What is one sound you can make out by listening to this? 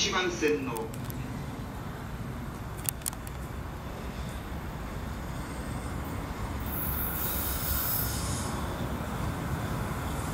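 A freight train rumbles toward the listener on the tracks.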